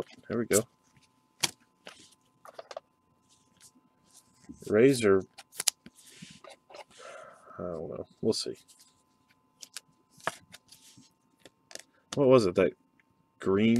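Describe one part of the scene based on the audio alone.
Plastic card sleeves rustle and crinkle as they are handled.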